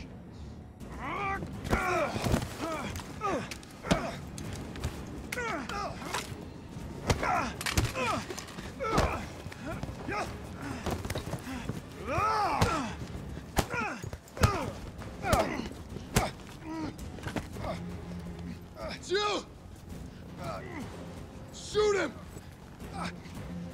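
Men grunt and strain as they fight.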